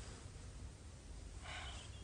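A woman sighs softly nearby.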